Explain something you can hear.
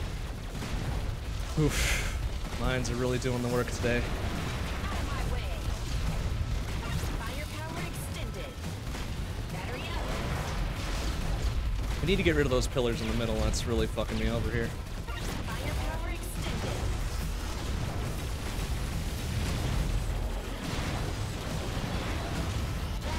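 Rapid electronic gunfire and explosions ring out.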